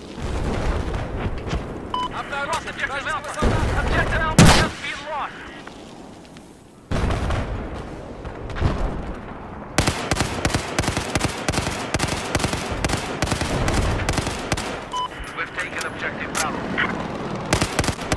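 Explosions rumble and boom in the distance.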